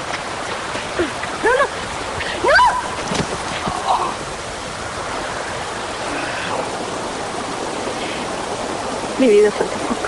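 A woman cries out and sobs.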